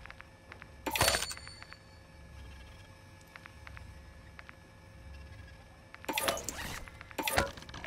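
Soft interface clicks tick as menu selections change.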